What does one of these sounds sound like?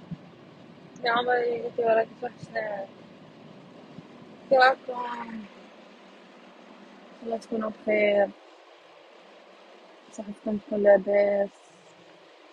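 A young woman speaks softly and close by, in short bursts.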